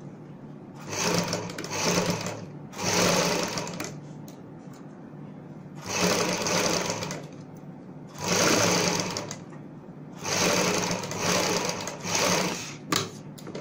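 A sewing machine whirs in short bursts.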